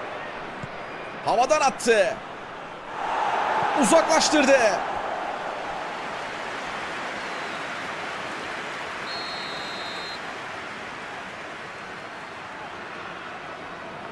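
A large stadium crowd roars, swelling loudly and then settling to a steady murmur.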